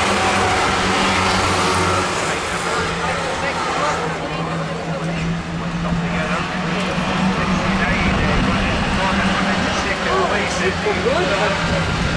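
Racing car engines roar and drone around a track outdoors.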